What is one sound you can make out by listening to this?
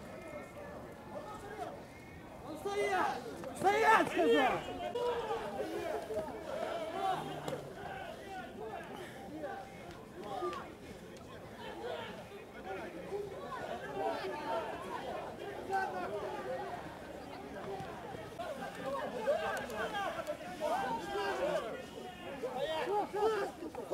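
A crowd of men and women shout and yell outdoors.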